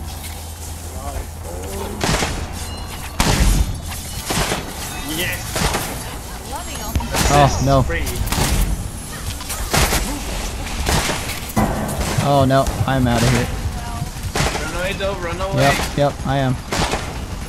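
Game weapons fire and blast in quick bursts.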